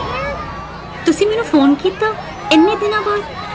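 A young woman laughs happily close by.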